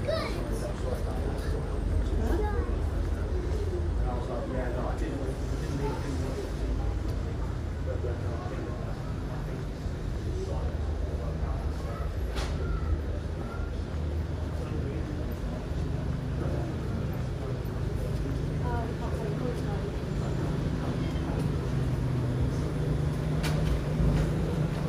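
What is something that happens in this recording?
Nearby adults talk faintly in passing.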